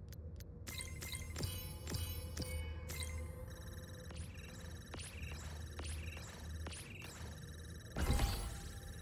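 Bright menu chimes tinkle in quick succession.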